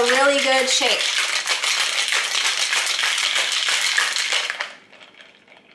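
Ice rattles loudly in a metal cocktail shaker.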